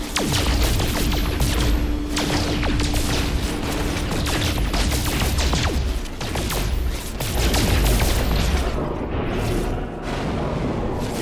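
Rock crackles and pops as it breaks apart.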